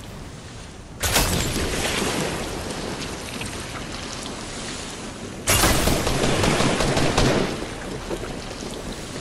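Rapid gunshots crack and thud against wooden walls.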